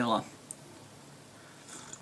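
A young man sips a drink from a mug.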